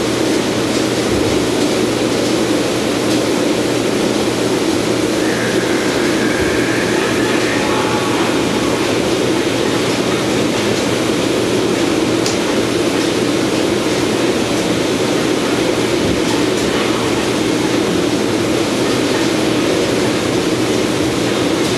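Steam hisses and roars steadily inside a metal vessel.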